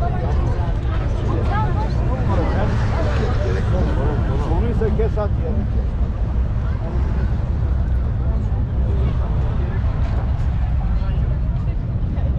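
Many people chatter nearby outdoors.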